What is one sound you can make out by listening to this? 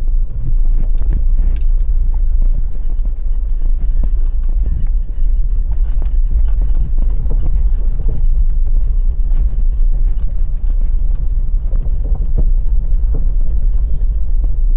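A car engine hums steadily from inside the car as it drives slowly.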